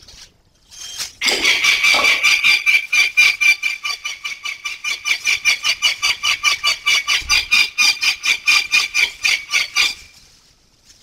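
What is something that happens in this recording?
A bird flaps its wings rapidly against a rustling plastic bag.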